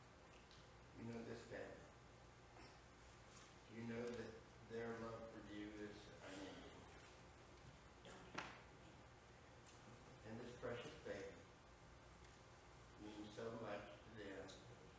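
An elderly man prays aloud in a calm, low voice, in a room with a slight echo.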